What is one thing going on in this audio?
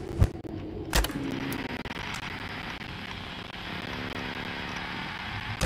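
Electronic static hisses steadily from a monitor.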